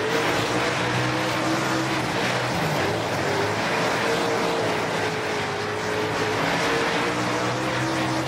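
A race car engine roars steadily, its pitch dipping and rising with the throttle.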